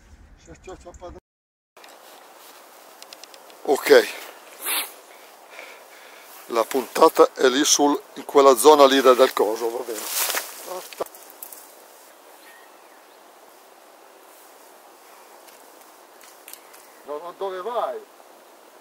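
A man talks outdoors with animation.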